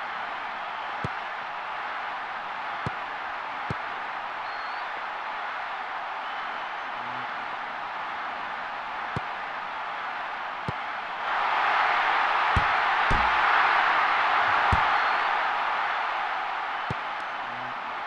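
A ball is kicked with dull thuds, again and again.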